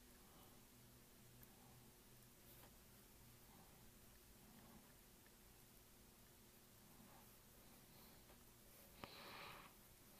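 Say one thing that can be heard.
Metal parts scrape and click softly as fingers twist them together.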